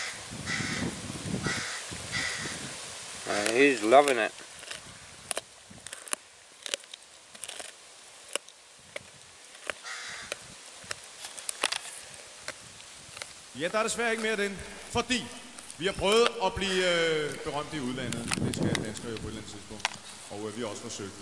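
A dog gnaws and crunches on a bone close by.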